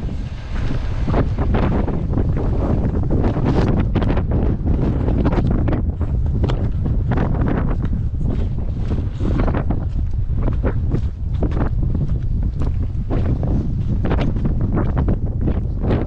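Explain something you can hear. Footsteps crunch on stony ground.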